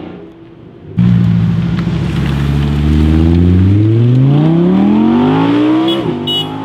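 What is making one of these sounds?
An Audi R8 V10 sports car pulls away and accelerates hard, its engine revving up.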